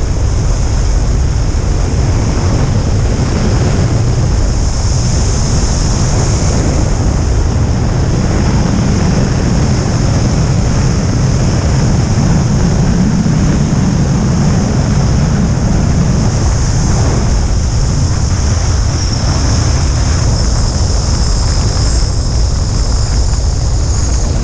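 Strong wind roars and buffets loudly past the microphone.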